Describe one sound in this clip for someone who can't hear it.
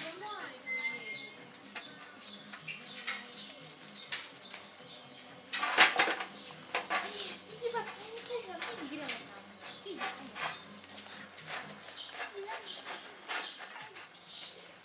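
Puppies lap and chew food from a tray.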